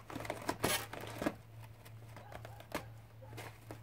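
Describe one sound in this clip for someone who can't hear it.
A hanging cloth sack rustles and thumps as an animal tugs at it.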